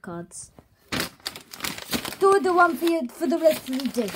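A sheet of paper rustles and crumples as it is handled.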